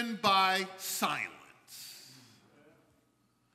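A man preaches loudly and with fervour through a microphone, his voice echoing.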